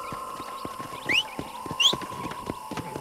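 A man whistles sharply twice.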